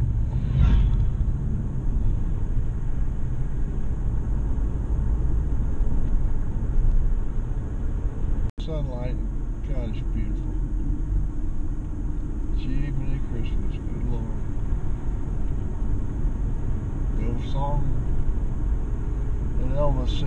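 A car engine hums and tyres rumble steadily on the road, heard from inside the car.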